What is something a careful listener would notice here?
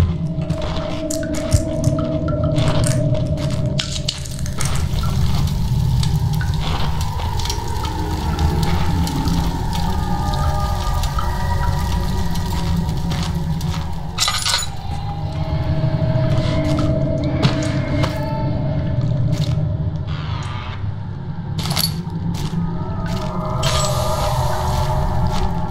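Footsteps shuffle slowly over a dirt floor.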